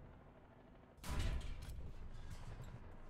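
A tank cannon fires with a loud boom.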